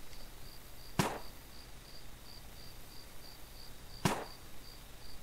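A spray gun hisses in short bursts.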